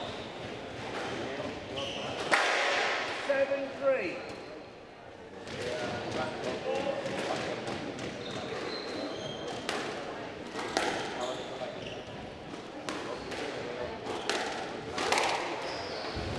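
Shoes squeak on a wooden court floor.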